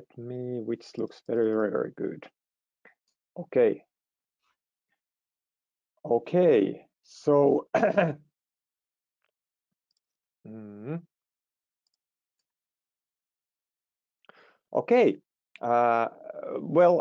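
A man speaks calmly through an online call, pausing between phrases.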